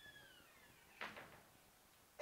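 A man's footsteps tap on a hard floor in a large echoing hall.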